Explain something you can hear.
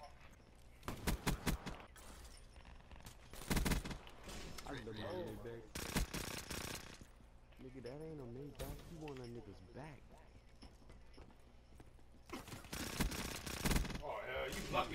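Rapid gunfire bursts out in short, loud volleys.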